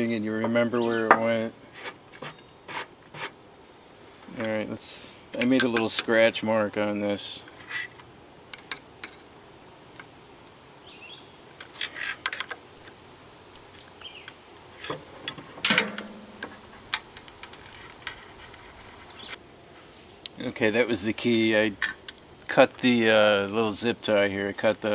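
Metal parts click and tap against each other up close.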